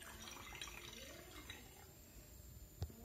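Liquid pours and splashes into a glass flask.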